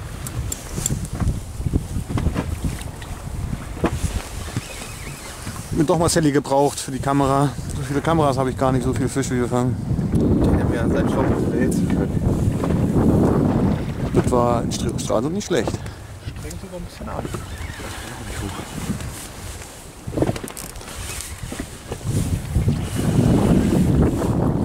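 Wind blows across the water.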